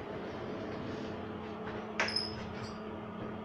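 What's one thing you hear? Elevator doors slide shut with a thud.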